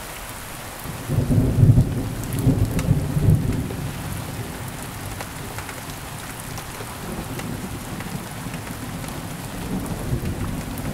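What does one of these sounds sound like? Thunder rumbles deeply and loudly, then rolls on more quietly.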